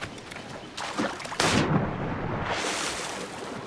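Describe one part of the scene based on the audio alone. A body splashes into water.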